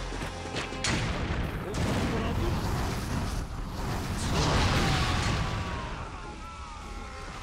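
An explosion bursts with a loud roar.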